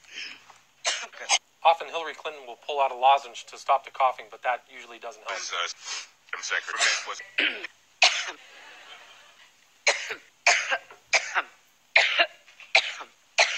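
A woman coughs hard into a microphone, again and again.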